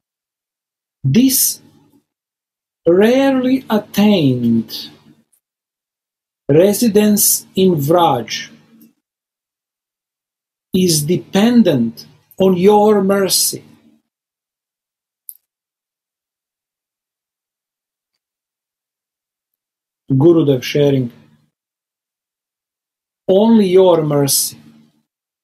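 An older man speaks calmly in short phrases over an online call.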